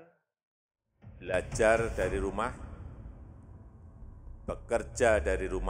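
A man speaks formally through a microphone in a room.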